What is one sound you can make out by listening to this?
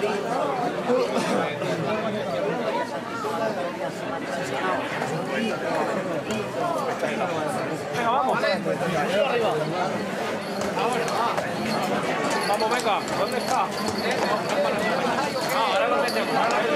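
A crowd of men talk and call out close by.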